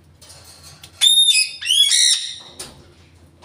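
A parrot whistles loudly in sharp rising calls.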